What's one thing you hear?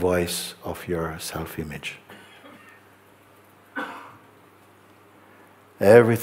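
A middle-aged man speaks calmly and slowly, close to a microphone.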